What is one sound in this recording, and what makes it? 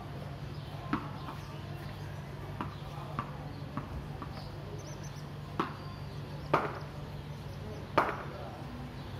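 A wooden bat knocks sharply against a hard floor several times.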